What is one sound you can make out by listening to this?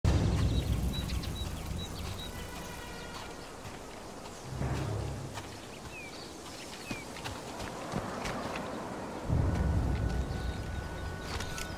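Footsteps crunch on a path.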